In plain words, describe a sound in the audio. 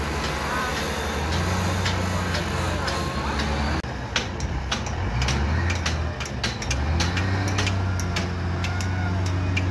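A loader's bucket scrapes and dumps dirt.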